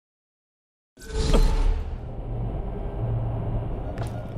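A deep whoosh swells and rushes past.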